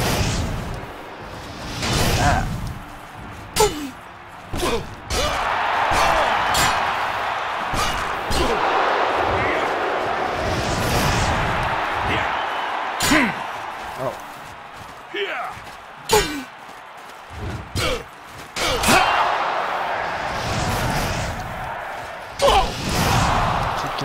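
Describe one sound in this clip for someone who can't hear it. Fire spells whoosh and roar in bursts.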